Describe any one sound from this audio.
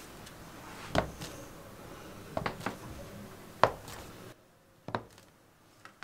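A dough scraper cuts through soft dough and taps on a wooden board.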